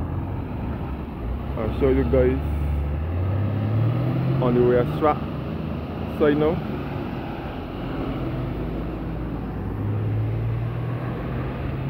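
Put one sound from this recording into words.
A car drives past close by.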